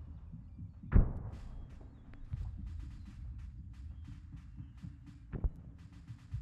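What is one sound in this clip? A rifle fires sharp single shots nearby.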